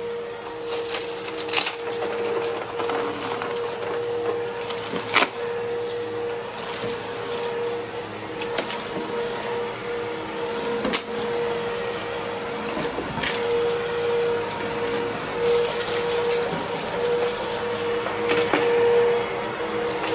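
A vacuum cleaner hums steadily as it runs over a rug.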